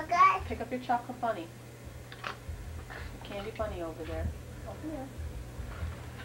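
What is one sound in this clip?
A woman talks to a small child in a lively, sing-song voice nearby.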